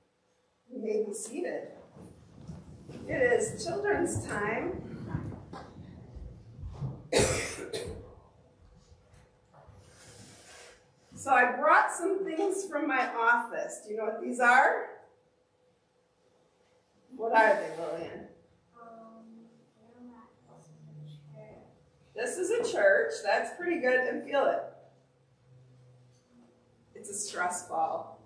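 A woman speaks warmly through a microphone in a room with some echo.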